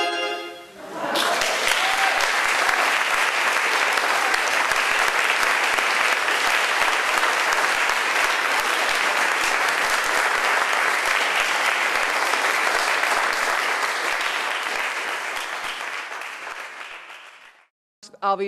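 A large audience claps and applauds in an echoing hall, then the applause fades away.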